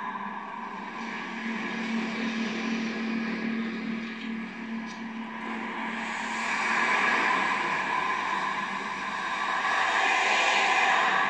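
Rushing, droning game sound plays through a small television speaker and swells louder toward the end.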